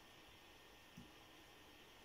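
A pencil taps lightly on a table.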